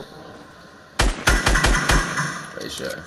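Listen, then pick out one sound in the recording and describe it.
Gunshots fire in a rapid burst.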